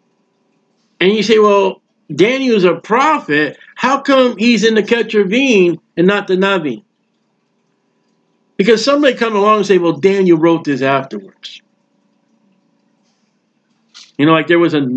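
A man talks calmly into a microphone, close up, with pauses.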